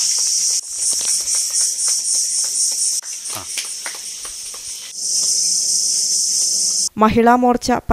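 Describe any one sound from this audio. A small group claps hands.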